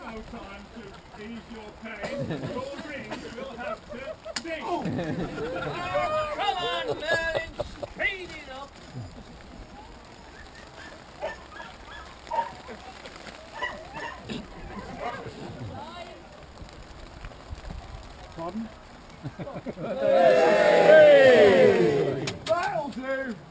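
A man speaks loudly to a crowd outdoors.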